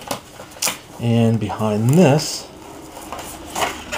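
Stiff plastic packaging crinkles and clicks as hands handle it.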